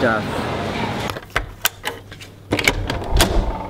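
A key card clicks in a door lock.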